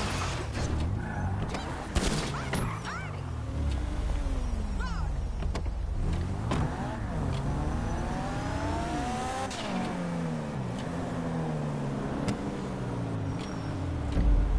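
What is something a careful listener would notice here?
Tyres screech as a car drifts around corners.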